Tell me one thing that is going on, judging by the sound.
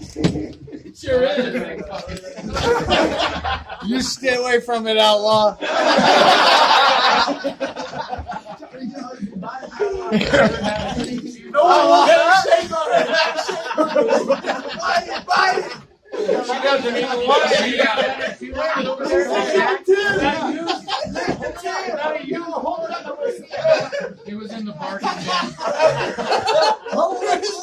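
Several men talk loudly nearby.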